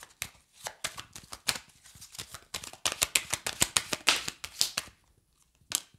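Playing cards shuffle and riffle in a young woman's hands.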